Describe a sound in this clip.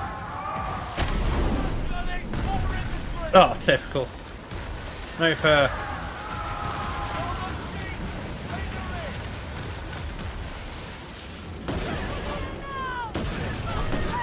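Cannons fire with heavy booms.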